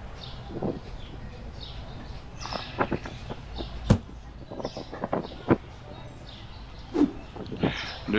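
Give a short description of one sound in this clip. A cardboard box thumps down onto a wooden floor.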